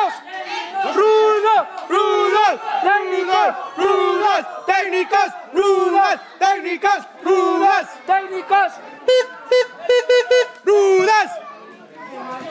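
A crowd chants loudly in a steady rhythm.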